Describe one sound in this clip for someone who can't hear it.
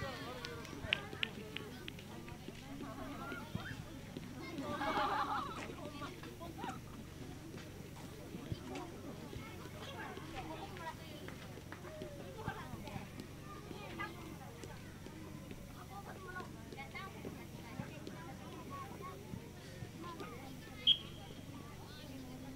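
Children shout and call out across an open playing field.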